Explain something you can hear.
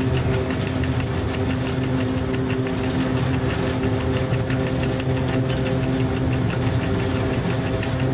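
Train wheels click rapidly over rail joints.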